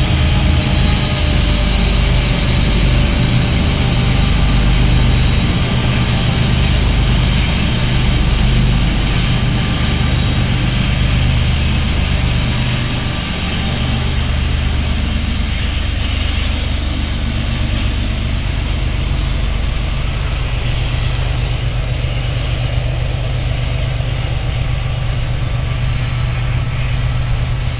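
Several diesel-electric freight locomotives pass close by, working hard under load with a deep rumble.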